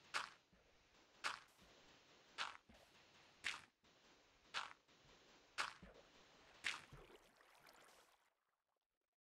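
Sand blocks break with sharp crunching thuds at a steady pace.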